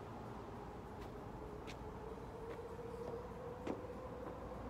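Footsteps tap on a wooden floor and step onto gravel nearby.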